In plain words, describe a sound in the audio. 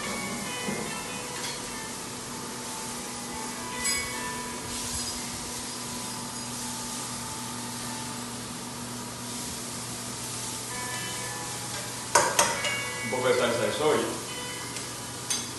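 A woman talks calmly close by.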